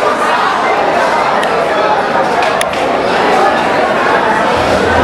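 A crowd murmurs and chatters loudly in a large echoing hall.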